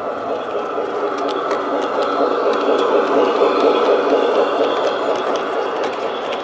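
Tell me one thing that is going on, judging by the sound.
A model train rumbles and clatters along its track.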